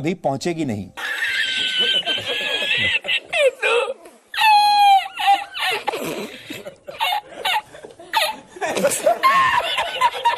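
A middle-aged man laughs loudly and heartily.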